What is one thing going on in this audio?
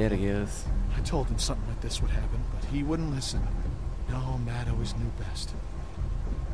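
An elderly man speaks sadly and quietly.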